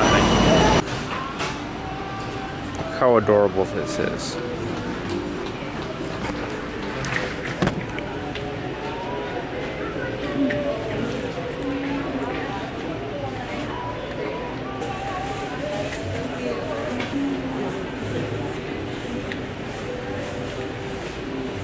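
A plush pillow rustles softly as it is handled.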